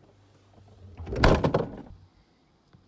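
A refrigerator door thumps shut.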